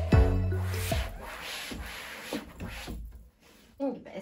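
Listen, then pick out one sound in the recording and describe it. A cloth wipes across a drawer's surface.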